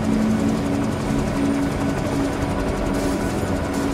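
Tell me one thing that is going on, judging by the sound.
A helicopter's rotor drones overhead.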